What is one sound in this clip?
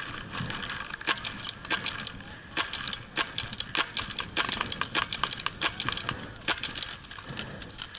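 A paintball gun fires in quick bursts of sharp pops close by.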